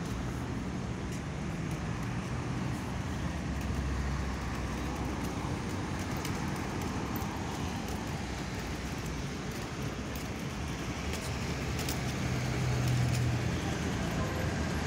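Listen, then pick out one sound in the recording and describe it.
A tram rumbles along rails nearby.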